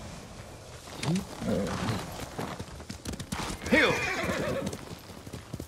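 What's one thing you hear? A horse snorts and whinnies.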